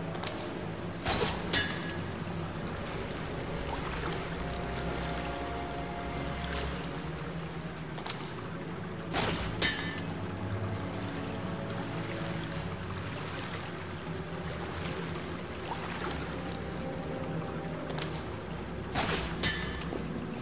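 A grapple gun fires with a sharp crack and a whizzing line.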